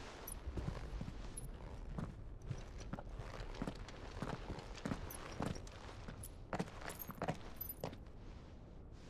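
Armoured boots clank on a stone floor.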